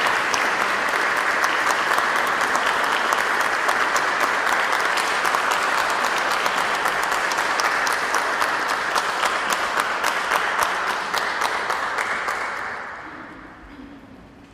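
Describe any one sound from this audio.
An audience applauds loudly in a large echoing hall, then the clapping dies away.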